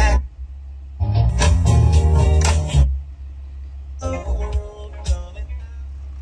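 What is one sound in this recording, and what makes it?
A dashboard button clicks.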